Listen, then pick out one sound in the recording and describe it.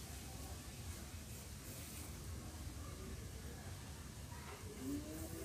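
A needle and thread rasp softly through coarse burlap.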